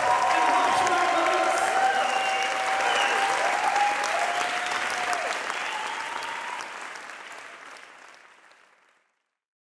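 A live swing band plays an upbeat tune in a large hall, then fades out.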